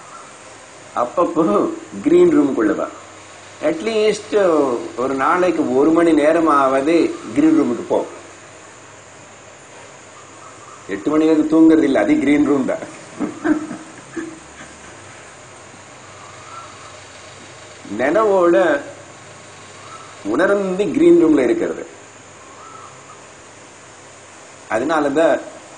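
An elderly man speaks with animation into a close microphone, in bursts with pauses.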